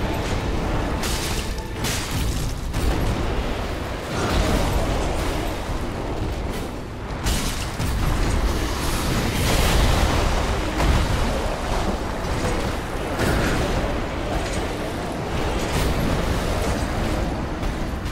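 Heavy blows and crashes thud on stone.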